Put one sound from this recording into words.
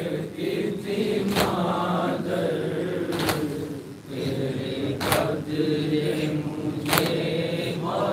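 A young man chants a lament loudly into a microphone.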